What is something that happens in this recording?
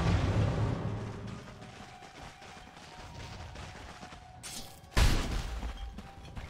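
Game sound effects of spells and weapon blows clash in a busy battle.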